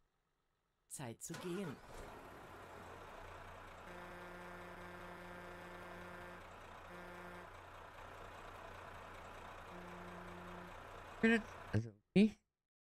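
A truck engine starts up and idles with a low, steady rumble.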